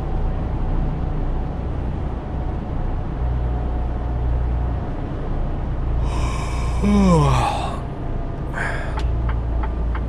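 A heavy truck engine drones steadily while driving.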